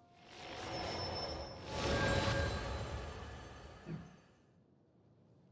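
A sparkling magical chime swells and fades.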